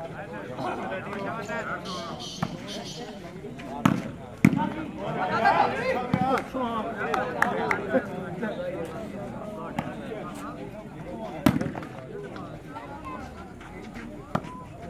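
A crowd of men and boys shouts and chatters outdoors.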